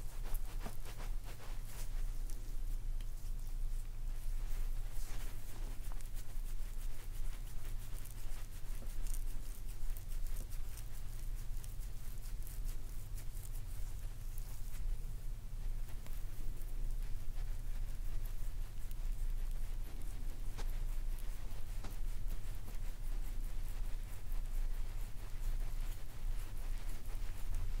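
Fingers rub and press on bare skin close to the microphone, with soft brushing and crackling sounds.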